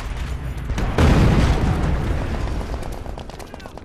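A heavy explosion booms and rumbles.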